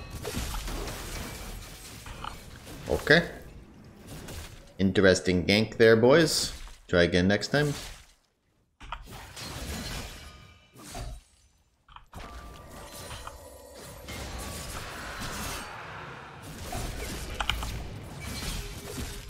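Game spell effects whoosh and burst during a fight.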